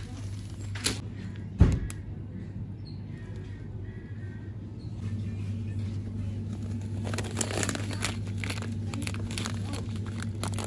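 A plastic food package crinkles and rustles in a hand.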